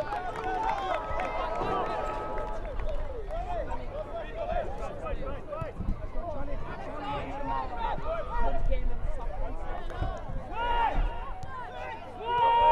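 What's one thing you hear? Football players shout to each other across an open field.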